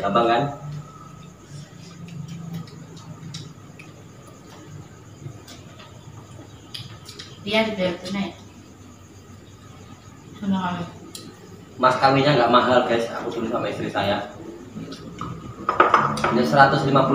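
Spoons clink against plates.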